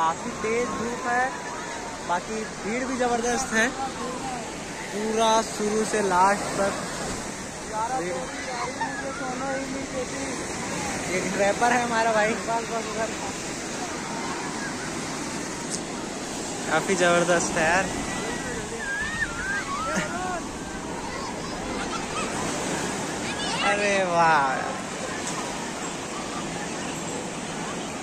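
Waves break and wash up on the shore.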